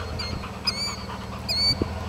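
A dog pants heavily close by.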